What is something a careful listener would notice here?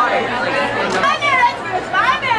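Young women shriek and squeal with excitement.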